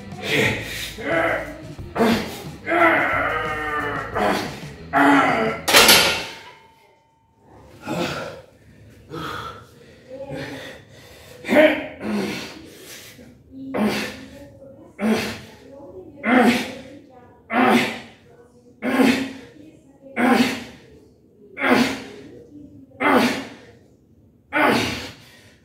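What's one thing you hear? A man grunts and breathes hard with each lift, close by.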